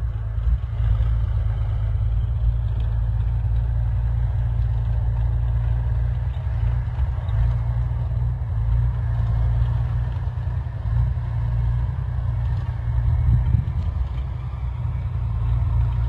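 An armoured vehicle's engine rumbles as the vehicle drives closer over rough ground.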